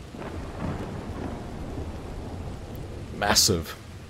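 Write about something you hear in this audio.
Thunder rumbles in the distance.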